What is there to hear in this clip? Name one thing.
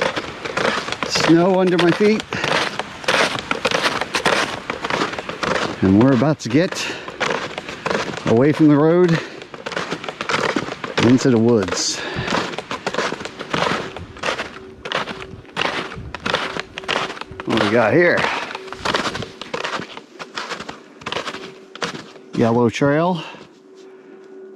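Snowshoes crunch steadily on packed snow.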